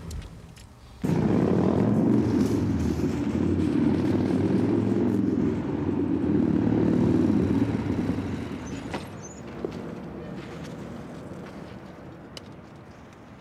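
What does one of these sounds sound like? A motorcycle engine rumbles loudly nearby, then fades.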